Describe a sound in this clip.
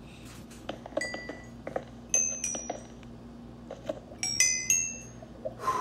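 Small high pops sound as items are picked up.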